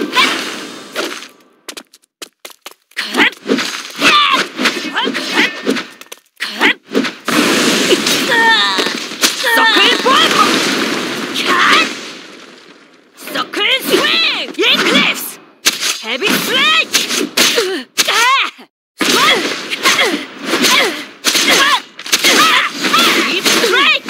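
Blades slash and clash in a fast fight.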